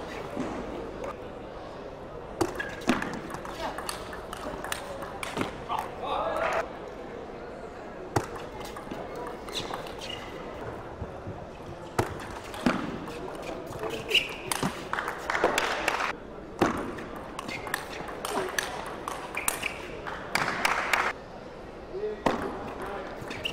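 A ball clicks back and forth off paddles and a table in quick rallies.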